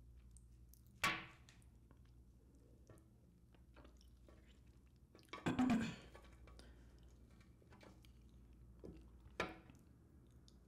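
Chopsticks click softly against food.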